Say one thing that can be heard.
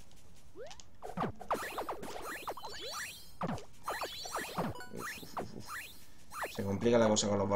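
Video game sound effects zap and whoosh in quick bursts during a fight.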